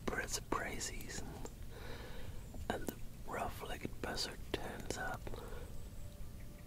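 A man speaks close up in an excited whisper.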